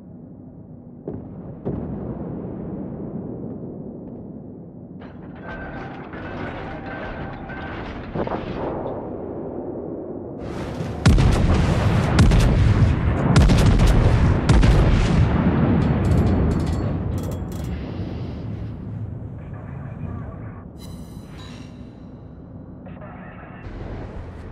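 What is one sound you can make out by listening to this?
Heavy ship guns boom in loud salvos.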